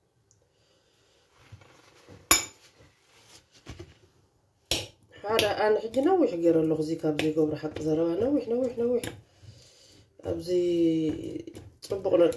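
Banana slices tap softly into a glass bowl.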